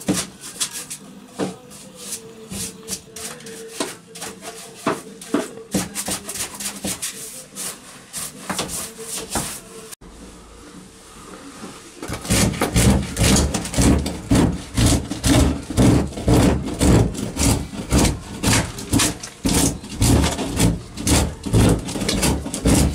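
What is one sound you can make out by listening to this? A hand tool scrapes and rasps against wood, getting faster and louder.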